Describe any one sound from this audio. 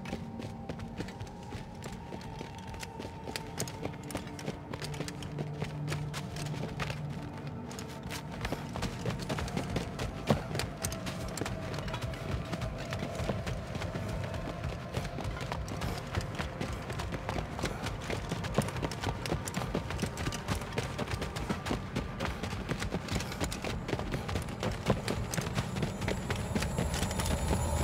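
Heavy footsteps crunch steadily on rough ground.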